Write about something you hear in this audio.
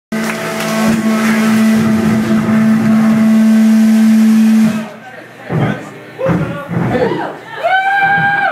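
A crowd of adults talks and laughs loudly nearby.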